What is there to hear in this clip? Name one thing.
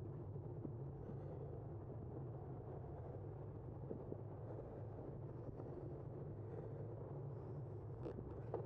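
Tyres roll steadily over smooth pavement.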